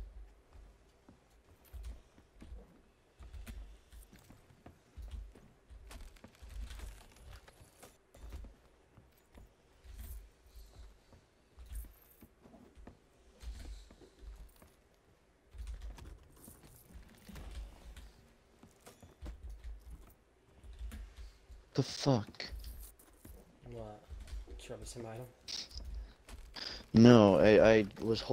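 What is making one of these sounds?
Footsteps thud on a wooden deck.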